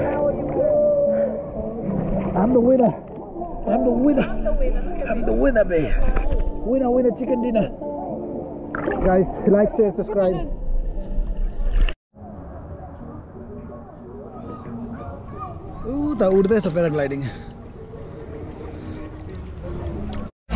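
Water laps and splashes gently around a swimmer.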